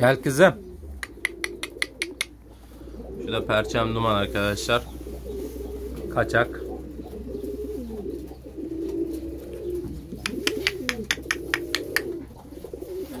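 Pigeons' feet patter and tap on a metal grate.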